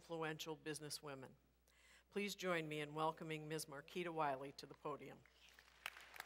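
A woman speaks calmly through a microphone and loudspeakers in a large echoing hall.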